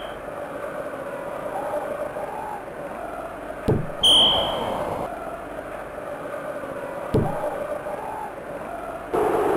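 A crowd roars steadily in a stadium.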